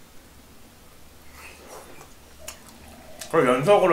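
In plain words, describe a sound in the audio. A young man chews food noisily.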